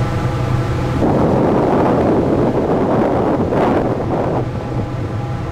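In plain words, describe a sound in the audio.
Water splashes and rushes against a moving boat's hull.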